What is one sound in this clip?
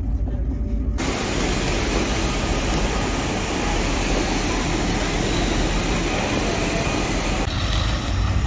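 Footsteps and a hum of people echo under a station roof.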